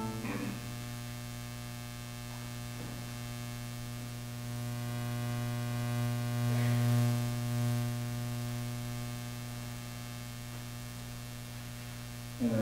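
A man speaks briefly from a distance in a large echoing hall.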